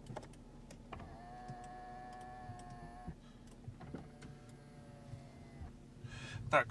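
An electric car window motor whines steadily as the glass slides down.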